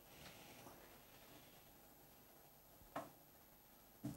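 A wooden cupboard door clicks open.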